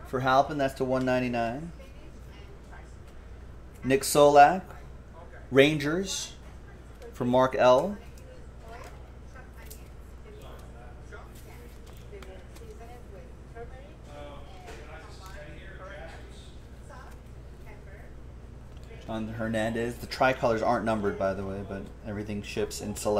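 Cards shuffle and slide against each other.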